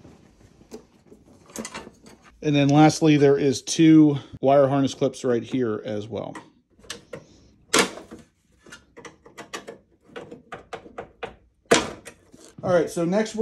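Plastic clips click and wires rattle against metal.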